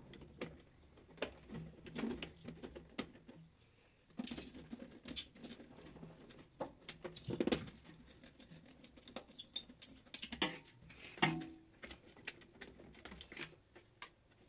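Wires and plastic terminals click and rustle as hands handle them.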